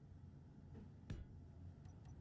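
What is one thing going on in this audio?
A block snaps into place with a sharp click.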